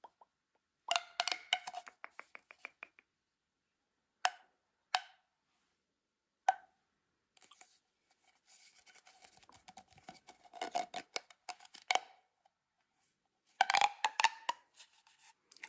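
A plastic pop tube crackles and pops as hands stretch and bend it close by.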